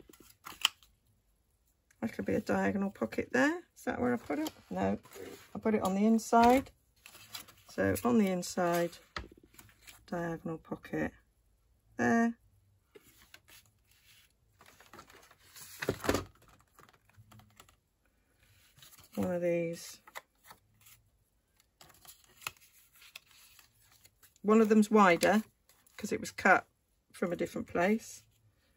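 Paper rustles and creases as it is folded by hand.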